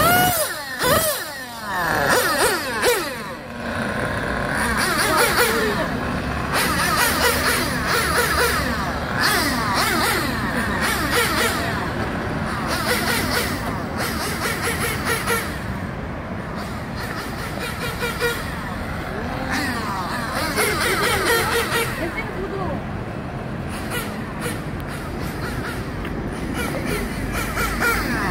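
A small electric motor whines, revving up and down as a toy car races.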